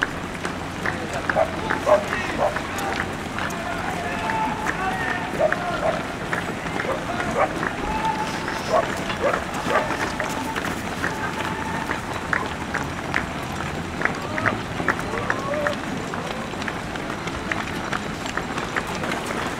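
Many running shoes patter on asphalt close by.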